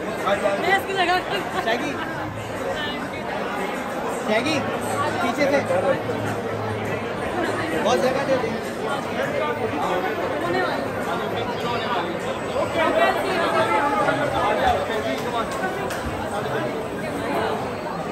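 A woman laughs and talks cheerfully nearby.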